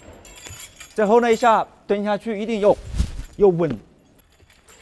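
A man speaks firmly nearby, giving instructions.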